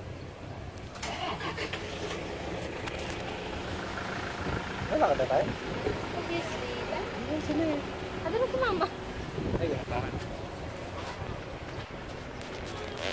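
A young man talks close by, calmly.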